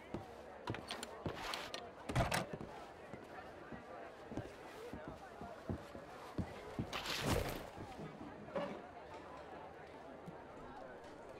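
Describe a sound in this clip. Footsteps tap slowly on a wooden floor indoors.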